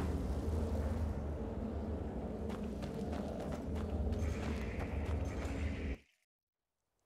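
A torch fire crackles with a low roar.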